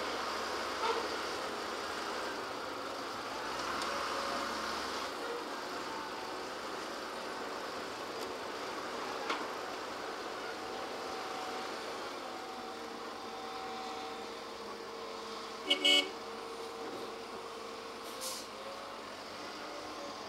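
An excavator's engine drones as it digs and swings.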